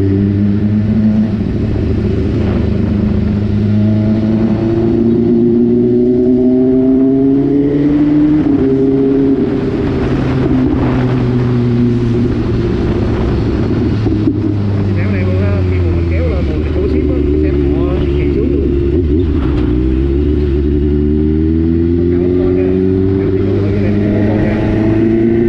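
A motorcycle engine hums steadily, its pitch rising and falling as it speeds up and slows down.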